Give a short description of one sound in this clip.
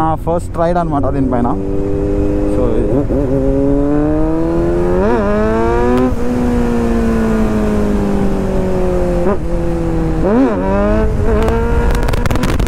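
A motorcycle engine hums steadily and rises and falls in pitch as the rider revs and shifts gears.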